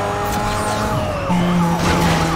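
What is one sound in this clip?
A sports car engine shifts up a gear.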